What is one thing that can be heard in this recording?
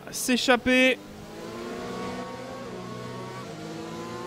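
A racing car engine hums steadily at high speed.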